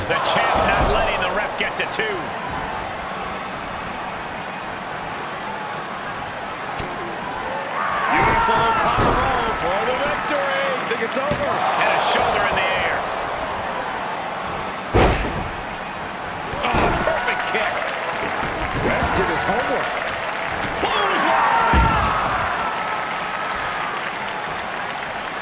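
A large crowd cheers steadily in an arena.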